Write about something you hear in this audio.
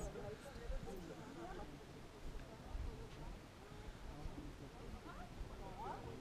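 A group of men and women chat casually nearby outdoors.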